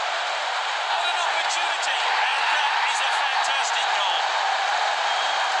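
A crowd cheers loudly after a goal.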